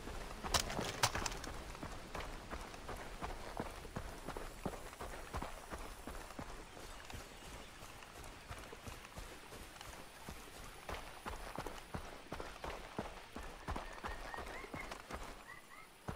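Footsteps crunch quickly on a dirt path.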